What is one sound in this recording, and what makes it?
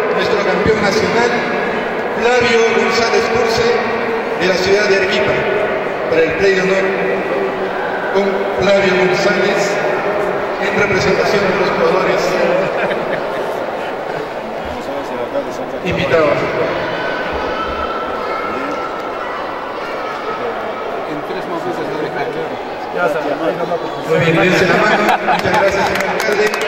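A man speaks with animation through a microphone and loudspeaker in a large echoing hall.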